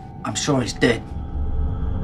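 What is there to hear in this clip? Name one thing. A man speaks quietly in a low voice.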